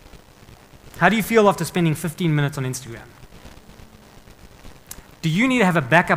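A man speaks calmly through a microphone in a large room, pausing between phrases.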